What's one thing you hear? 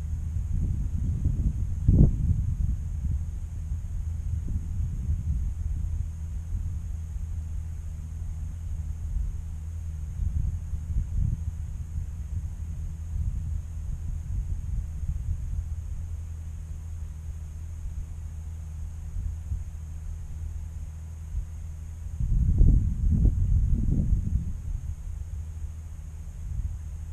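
Wind gusts across an open field and buffets close by.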